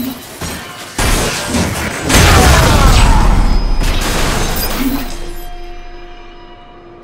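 A loud explosion booms and rumbles away slowly.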